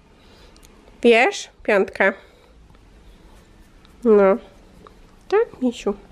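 A small dog yelps and whines in short, high-pitched bursts close by.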